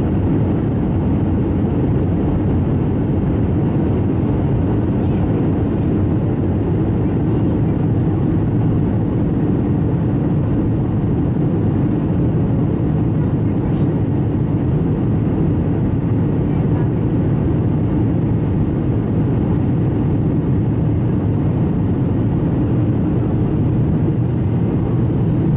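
A jet engine roars steadily with a low rumble inside an airplane cabin.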